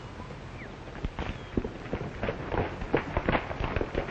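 Horses' hooves thud on the ground as riders approach.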